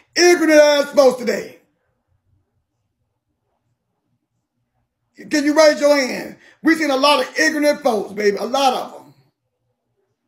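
A man speaks with animation, close to a phone microphone, in short bursts.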